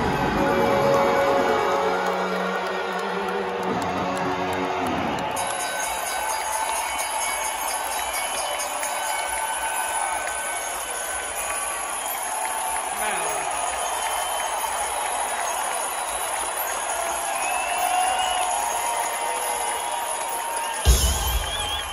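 A large crowd cheers and screams in a big echoing arena.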